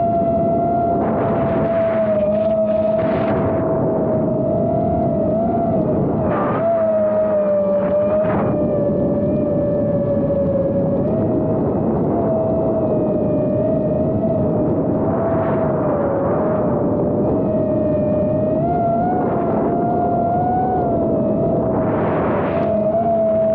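Wind rushes past in brief gusts.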